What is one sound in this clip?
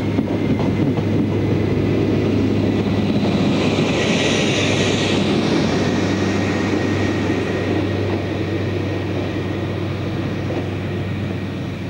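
A train's wheels clatter over rails.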